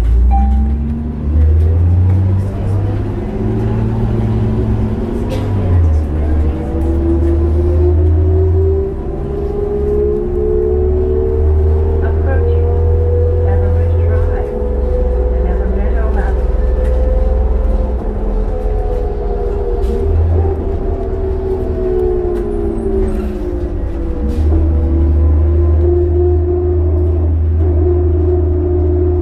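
A bus rumbles and rattles over the road.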